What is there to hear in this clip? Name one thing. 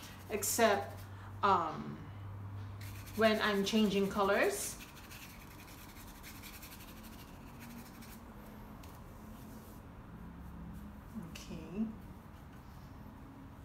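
A paintbrush softly brushes paint onto a canvas.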